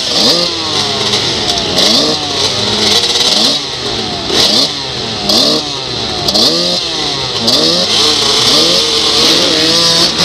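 A motorcycle engine revs up and down close by, climbing and dropping over and over.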